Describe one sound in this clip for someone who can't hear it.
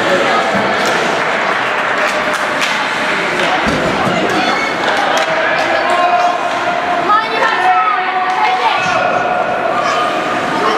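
Young players shout and call out in an echoing rink.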